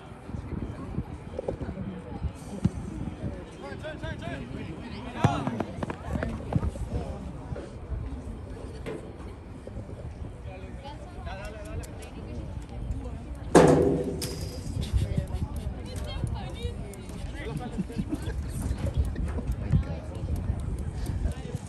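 Spectators nearby talk and call out across an open field.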